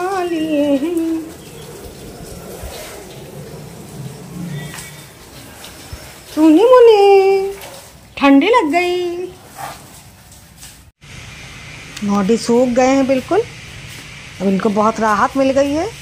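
A dog whines and howls in high, wavering cries.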